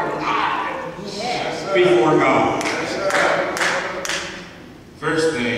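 A man preaches with animation into a microphone, his voice echoing in a large room.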